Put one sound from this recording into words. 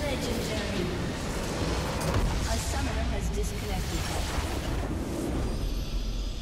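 A large structure in a game blows up with a deep rumbling explosion.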